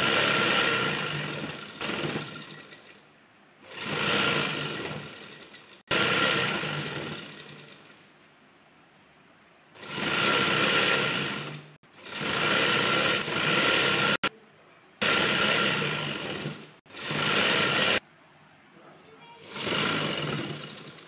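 A sewing machine whirs and stitches in short bursts, stopping and starting again.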